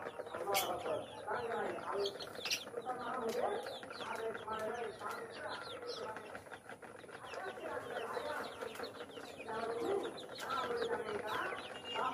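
Many young chicks peep and cheep constantly, up close.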